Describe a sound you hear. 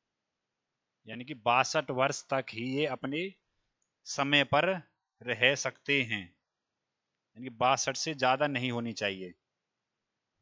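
A man speaks calmly and clearly into a headset microphone.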